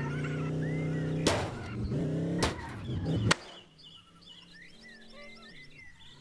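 A video game car engine hums and drones.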